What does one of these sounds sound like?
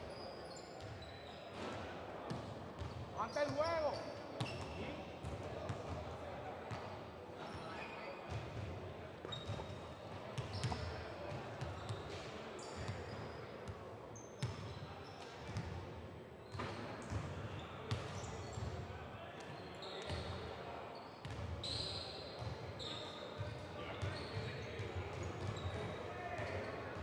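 Sneakers squeak on a hard court in a large echoing gym.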